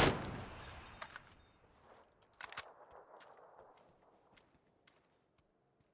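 A rifle's magazine clicks and clatters as it is reloaded.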